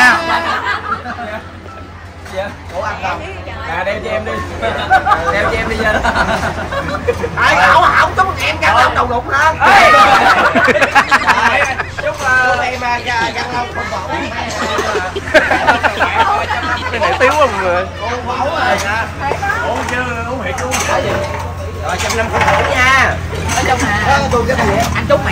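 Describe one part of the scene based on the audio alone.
A group of young men and women talk and laugh loudly close by.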